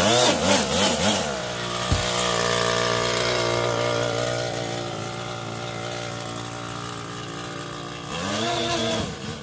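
A string trimmer engine whines up close, revving up and down.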